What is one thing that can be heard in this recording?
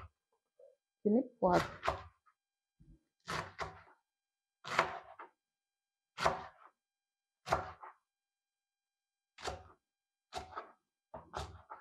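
A knife chops vegetables on a cutting board in steady, spaced strokes.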